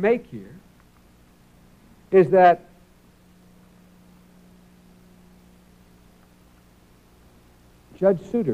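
A man speaks slowly and deliberately into a microphone, in short phrases with long pauses.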